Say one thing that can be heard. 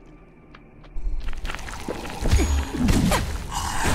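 A fiery explosion bursts and crackles.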